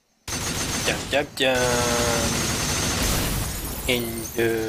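Glass shatters loudly into pieces.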